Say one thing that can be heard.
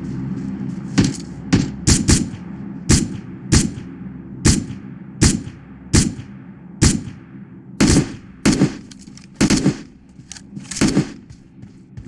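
Rifle shots crack out one at a time, each with a short echo.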